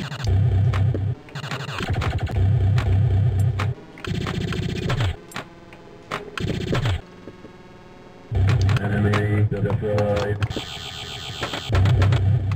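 Electronic pinball sounds chime and beep with a thumping beat.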